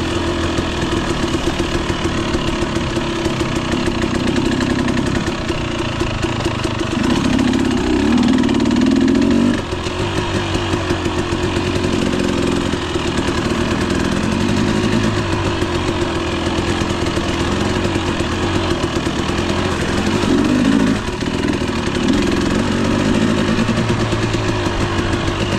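A dirt bike engine rumbles close by and revs up and down.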